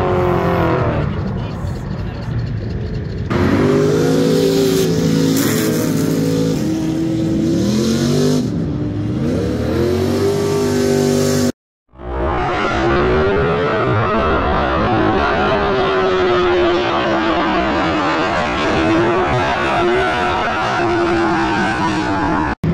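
Car engines rev hard and roar.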